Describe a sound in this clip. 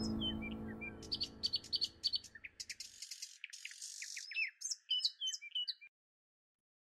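Birds chirp and twitter.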